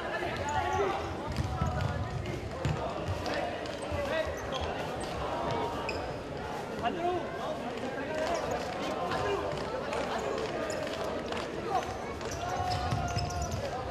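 Sports shoes squeak sharply on a hard court.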